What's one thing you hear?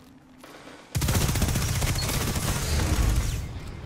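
Rapid gunfire rings out loudly.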